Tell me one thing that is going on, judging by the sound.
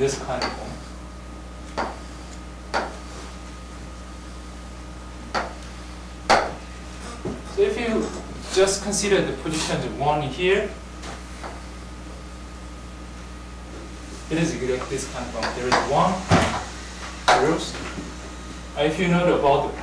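A young woman lectures calmly.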